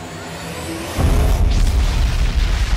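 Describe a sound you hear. Pyrotechnics go off with a loud boom.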